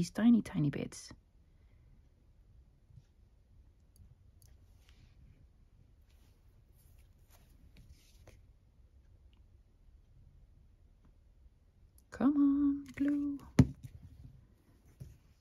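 Paper rustles softly under fingers.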